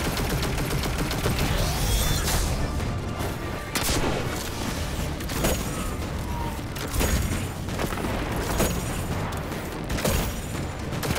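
Heavy weapon shots boom at a steady pace.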